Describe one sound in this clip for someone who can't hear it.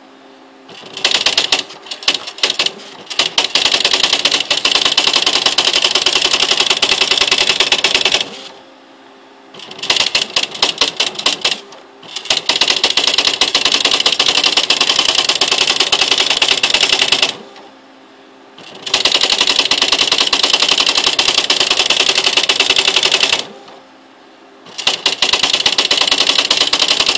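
An electronic daisy-wheel typewriter prints lines automatically in rapid bursts of clatter.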